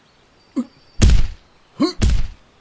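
Heavy blows land with deep thuds.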